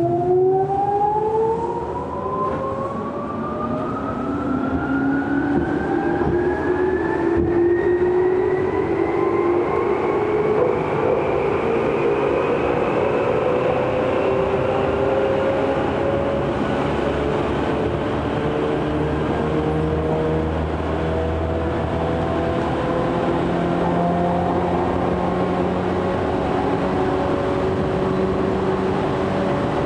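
Wheels of an electric commuter train rumble on the rails, heard from inside the car.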